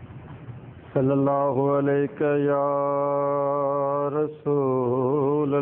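An elderly man chants in a long, melodious, sustained voice through a microphone.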